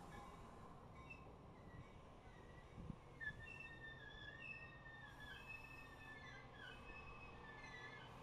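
A passenger train rolls slowly past with a low rumble.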